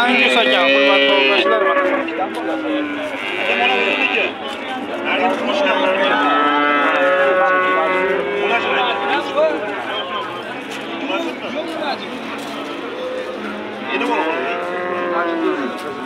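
Several men talk loudly close by, voices overlapping.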